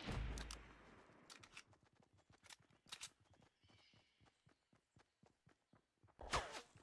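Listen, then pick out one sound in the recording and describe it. Footsteps run over grass in a video game.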